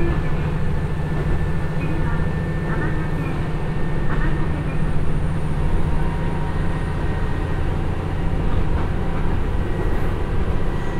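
A diesel train engine drones steadily.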